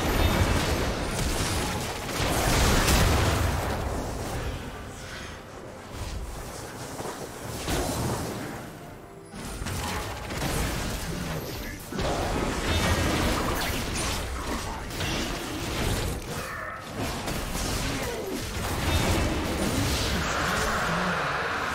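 Magic blasts and hits crackle and boom in a busy fight.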